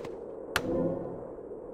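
A sword strikes with a sharp crack.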